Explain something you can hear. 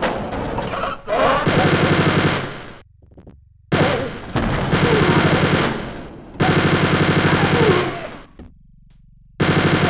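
A machine gun fires in long, rapid bursts.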